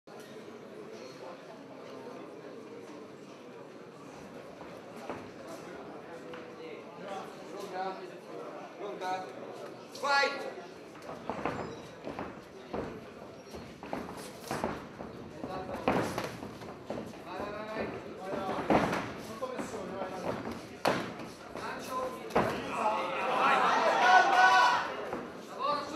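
A crowd murmurs and shouts in an echoing hall.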